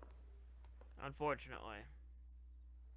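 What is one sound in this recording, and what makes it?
A man speaks briefly in a firm voice.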